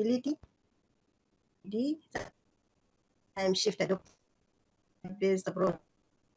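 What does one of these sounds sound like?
A young woman speaks calmly in short phrases over an online call.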